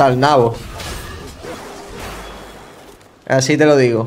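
Magic spell effects whoosh and crackle.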